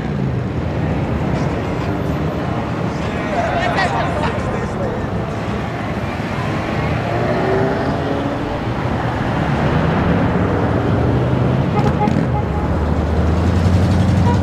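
Jeep engines rumble as they drive slowly past.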